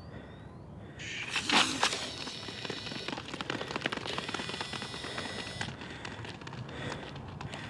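Sprinters' shoes patter quickly on a running track.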